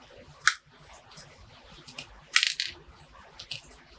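Fingers press and crunch into loose soil.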